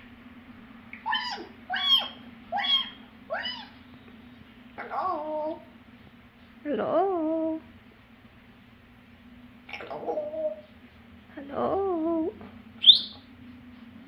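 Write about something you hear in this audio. A parrot whistles and chirps in short, wavering calls close by.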